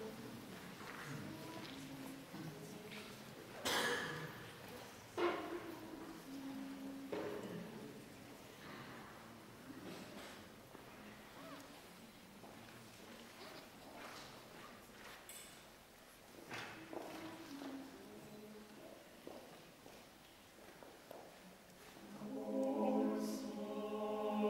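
A men's choir sings slowly in a large echoing hall.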